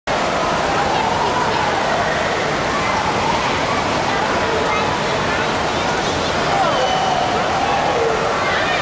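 Water splashes in a shallow pool.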